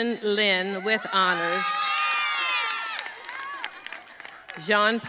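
A crowd cheers and whoops loudly outdoors.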